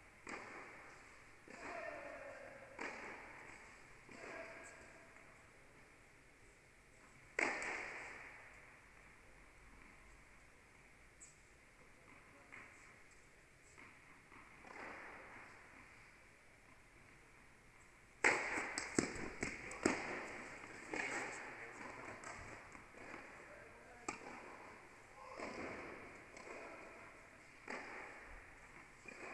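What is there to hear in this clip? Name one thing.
Tennis balls are struck with rackets, echoing in a large indoor hall.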